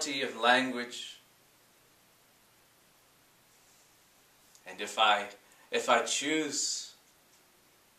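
A man speaks calmly close to a microphone, in short phrases with pauses.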